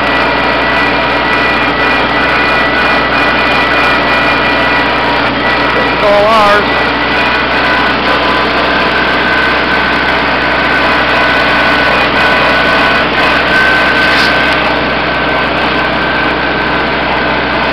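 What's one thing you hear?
A tractor engine rumbles steadily up close.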